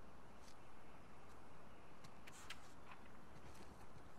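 A paper page turns with a soft rustle.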